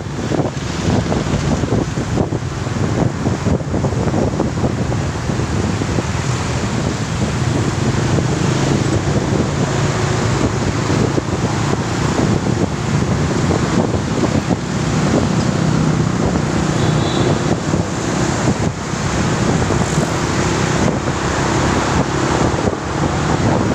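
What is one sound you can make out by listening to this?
Wind rumbles loudly and buffets.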